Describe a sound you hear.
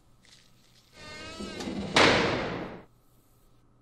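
Metal doors swing shut.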